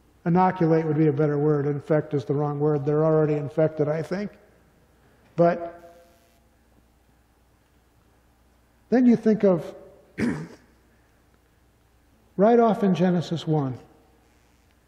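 A middle-aged man speaks slowly and steadily into a microphone, in a large room with a slight echo.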